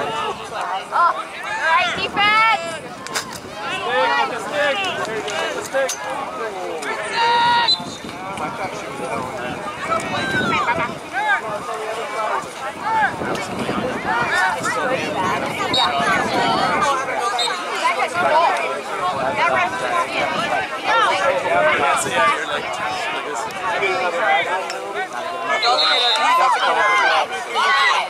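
A crowd of adults and children shout and cheer outdoors.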